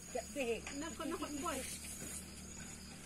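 A young child calls out nearby, outdoors.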